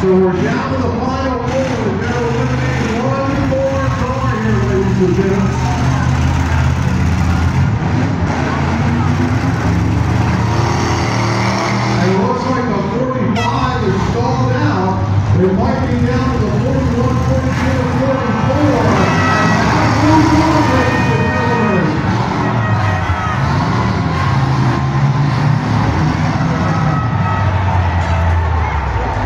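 Car engines rev and roar loudly.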